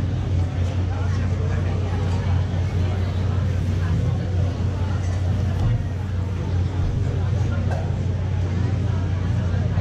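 An electric guitar plays loud and distorted through amplifiers.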